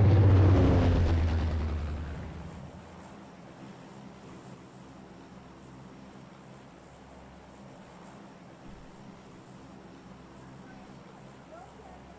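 A propeller plane's engines drone steadily, loud at first and then quieter.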